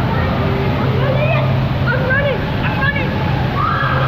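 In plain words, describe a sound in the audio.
A boy talks and shouts excitedly nearby.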